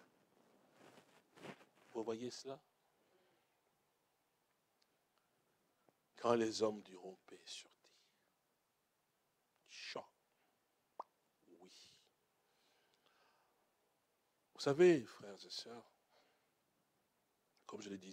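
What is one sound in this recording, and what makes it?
A middle-aged man speaks slowly and emotionally into a microphone, with long pauses.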